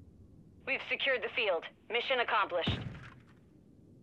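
An elderly man speaks with animation into a close microphone.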